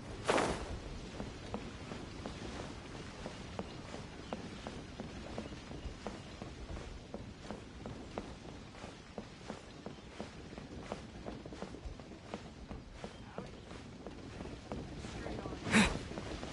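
Quick footsteps patter on wooden boards.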